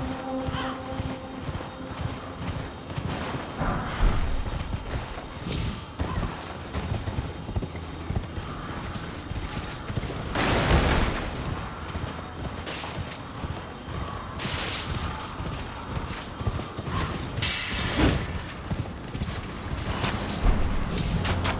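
Footsteps crunch quickly over gravel and rubble.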